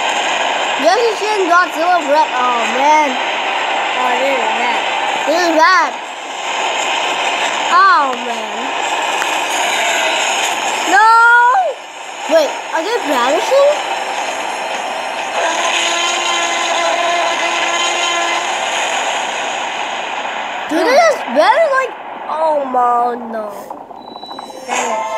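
Dinosaurs screech and squeal over a television speaker.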